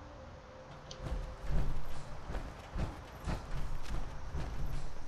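Heavy armoured boots clomp steadily up stone steps.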